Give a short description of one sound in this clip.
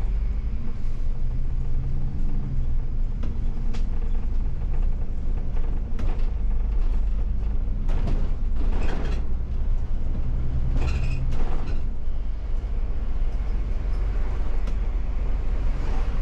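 A bus engine rumbles steadily from inside the cab.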